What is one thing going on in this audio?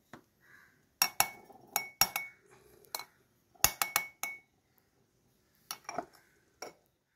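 A metal scoop clinks against a glass.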